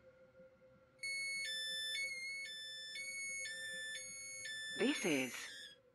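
A train's door alarm beeps in a quick repeating two-tone pattern.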